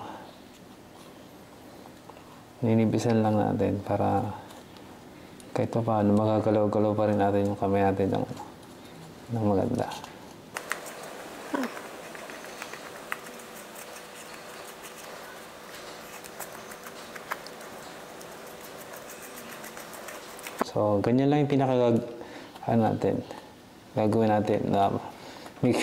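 A wooden stick softly scrapes and dabs thick paste onto a leather glove.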